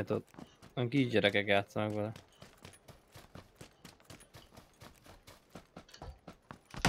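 Footsteps run quickly over dirt and a hard floor.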